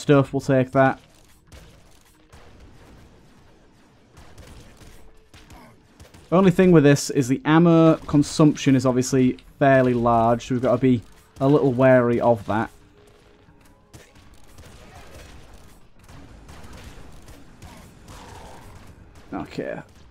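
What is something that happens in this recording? Rapid game gunfire pops and crackles.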